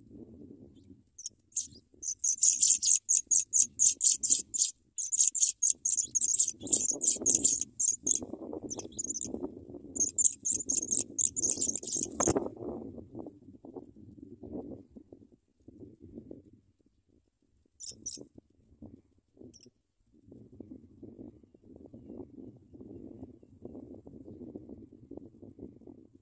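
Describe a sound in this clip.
Dry grass rustles as the nestlings shift about.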